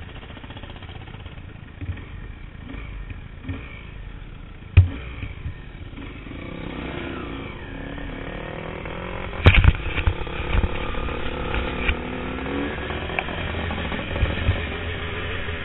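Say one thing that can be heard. Other dirt bike engines buzz nearby.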